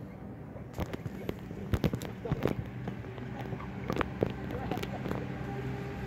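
A plastic cup is set down on artificial turf close by.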